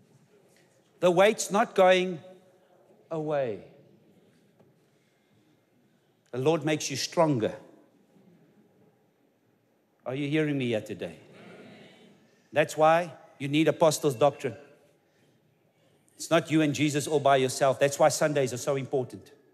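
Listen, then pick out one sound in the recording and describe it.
A man preaches with animation through a microphone, pausing between phrases.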